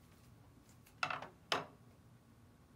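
A man sets something down with a knock.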